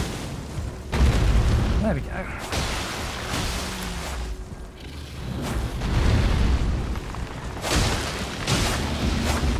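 A huge beast growls and stomps heavily.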